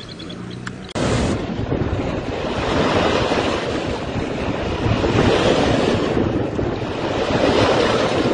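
Water rushes and churns loudly.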